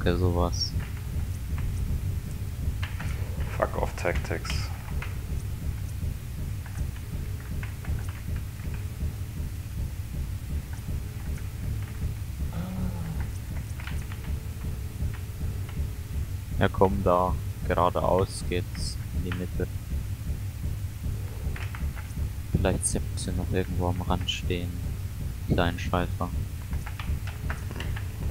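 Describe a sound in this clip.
A heavy walking machine rumbles low and steadily.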